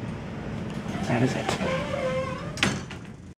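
Elevator doors slide shut with a rumble.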